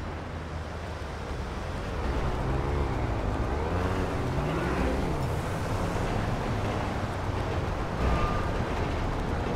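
Car engines rumble as traffic drives past.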